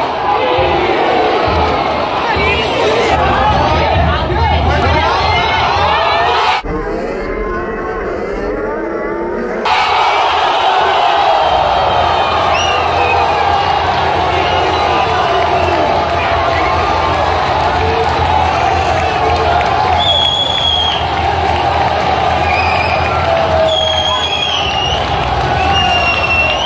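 A large stadium crowd chants and roars, echoing widely.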